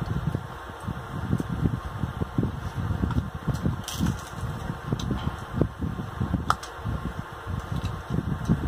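Fingers crack and peel crab shell close to a microphone.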